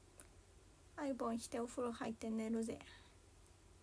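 A young woman speaks softly and close by.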